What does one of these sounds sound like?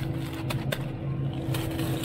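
Plastic bags of frozen food crinkle under a hand.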